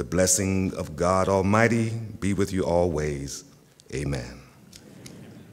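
A man speaks calmly into a microphone over a loudspeaker in a large hall.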